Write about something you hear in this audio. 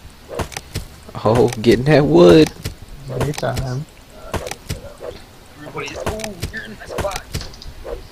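An axe chops into wood with dull thuds.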